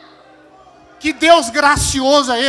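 A man shouts loudly into a microphone.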